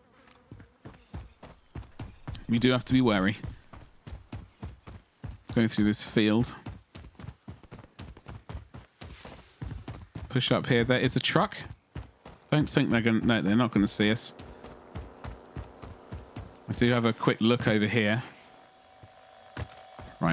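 Footsteps run quickly over grass and hard ground.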